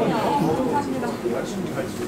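A young woman laughs brightly close by.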